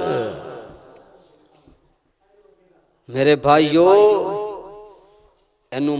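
A man chants a melodic recitation into a microphone, his voice echoing through a loudspeaker.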